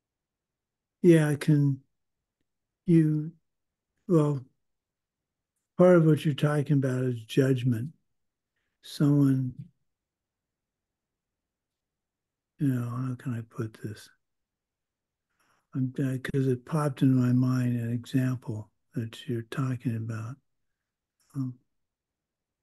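A middle-aged man speaks calmly in short phrases over an online call.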